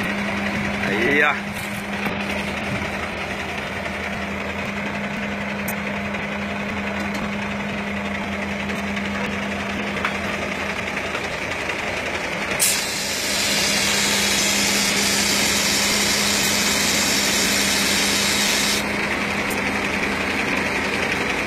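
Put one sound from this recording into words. Truck tyres crunch slowly over gravel and dirt.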